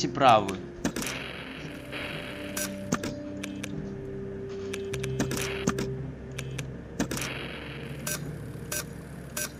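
Static hisses in short bursts.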